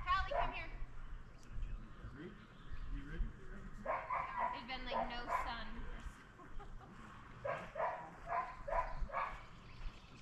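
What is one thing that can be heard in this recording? A woman calls out from a distance outdoors.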